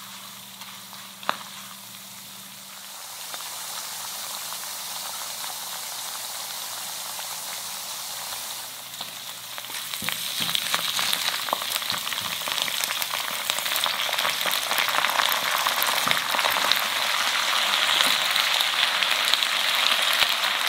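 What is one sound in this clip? A wooden spatula scrapes against a pan.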